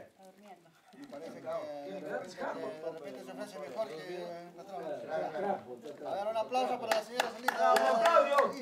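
Several men and women talk over each other nearby.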